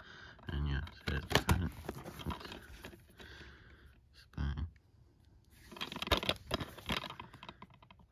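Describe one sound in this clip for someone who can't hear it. A plastic case clicks and rattles as it is handled.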